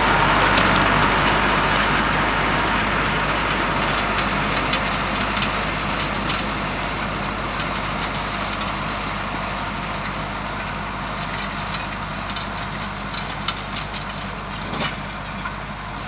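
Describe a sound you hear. A hoe scrapes and chops into dry soil.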